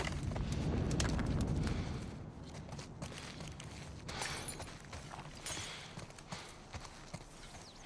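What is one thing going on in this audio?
Footsteps crunch on debris and gravel outdoors.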